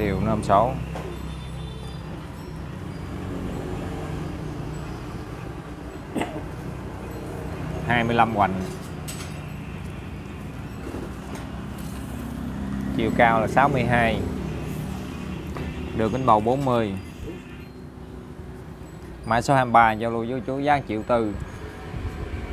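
A middle-aged man talks close by, in short bursts.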